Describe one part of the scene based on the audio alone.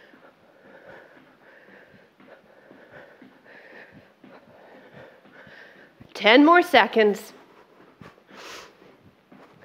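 Feet thump lightly on the floor as a woman jumps.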